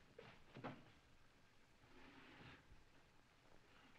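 Men shift a heavy wooden crate with knocks and thuds.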